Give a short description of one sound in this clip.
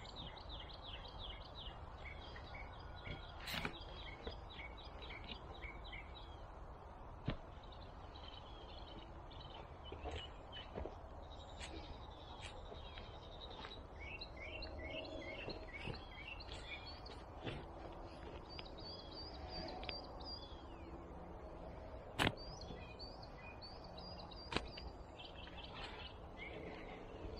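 A shovel digs and scrapes into soil.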